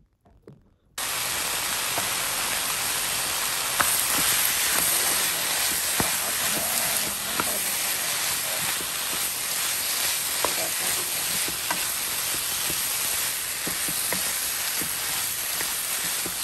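Meat sizzles loudly in a hot pan.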